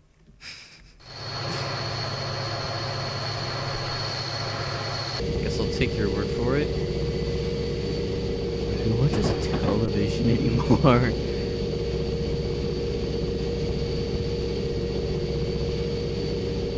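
A locomotive engine rumbles steadily.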